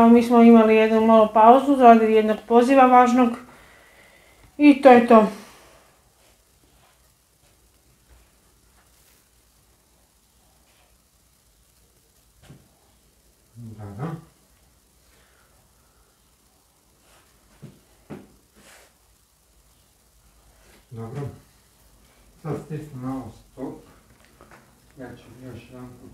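A man talks nearby in a calm voice, with long pauses.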